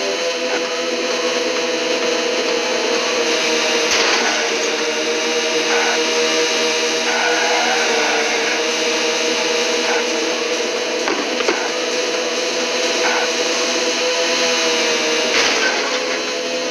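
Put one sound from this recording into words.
A racing car engine whines steadily at high revs.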